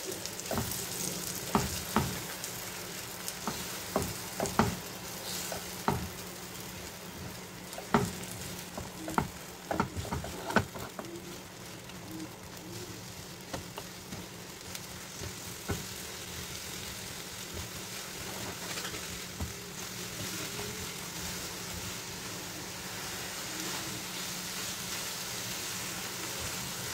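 Eggs sizzle softly in a hot pan.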